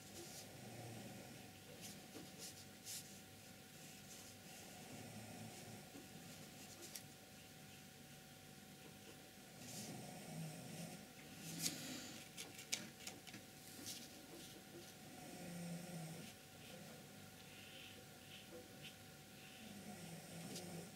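A paintbrush softly strokes across paper.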